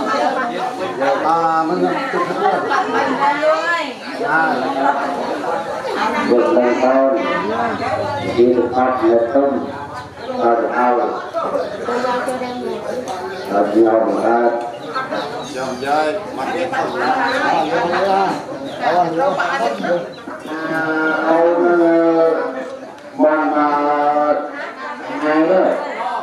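A man chants steadily nearby.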